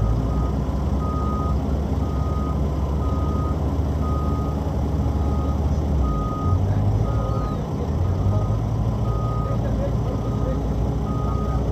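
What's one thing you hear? A reversing alarm beeps in a steady rhythm.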